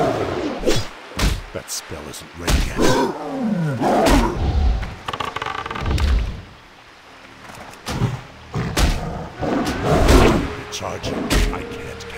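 A blade swings and strikes in a fight.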